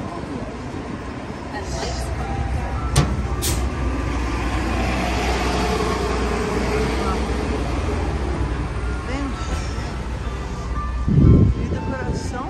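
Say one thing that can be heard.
Street traffic rumbles steadily outdoors.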